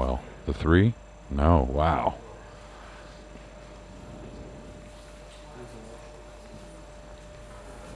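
Pool balls knock together and roll across the table.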